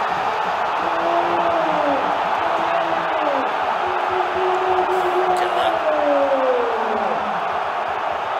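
A stadium crowd chants in unison.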